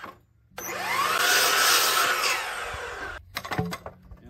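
A power miter saw whines as it cuts through wood.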